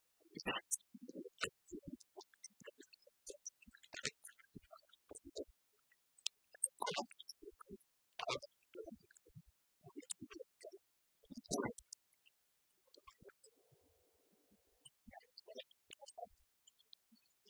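Keys clatter on laptop keyboards.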